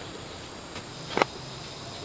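A shovel digs into hard, dry earth.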